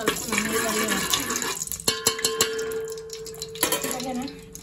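A metal spatula scrapes and clinks against a metal pot.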